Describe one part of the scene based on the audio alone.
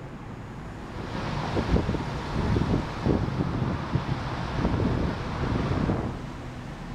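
City traffic hums steadily along a street outdoors.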